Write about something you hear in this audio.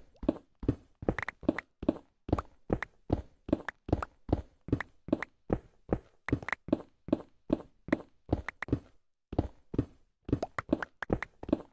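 Stone blocks crack and crumble in quick, rapid breaks, one after another.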